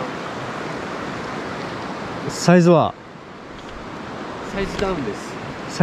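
A shallow river rushes over stones.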